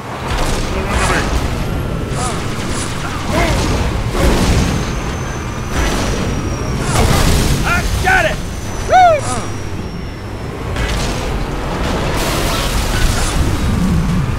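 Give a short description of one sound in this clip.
Gunfire and energy blasts crack repeatedly.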